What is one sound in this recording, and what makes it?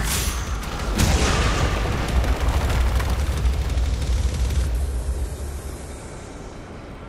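Rock shatters in a loud explosion with a deep rumble.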